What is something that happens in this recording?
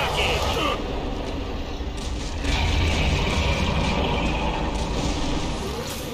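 Flames roar from a flamethrower.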